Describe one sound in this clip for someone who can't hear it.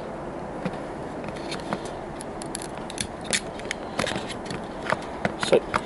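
A small plastic model wagon clicks and rattles as fingers handle it on a track.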